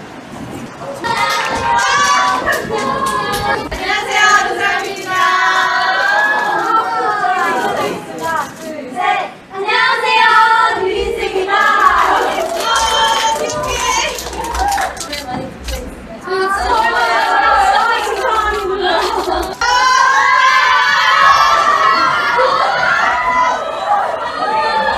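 Young women greet each other cheerfully, talking and laughing close by.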